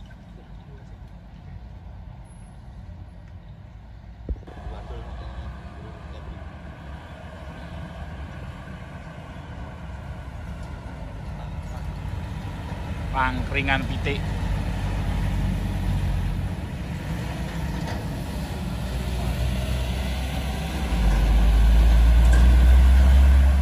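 Heavy truck engines rumble as trucks climb a winding road.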